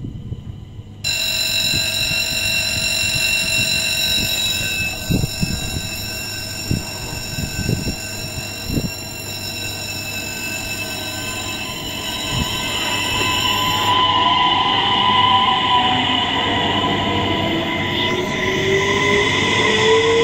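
A level crossing bell rings steadily.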